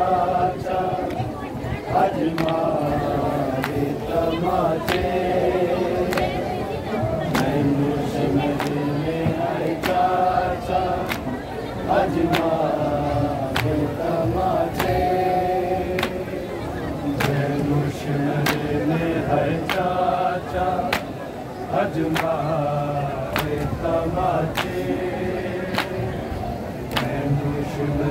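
Hands beat on chests in a slow, steady rhythm.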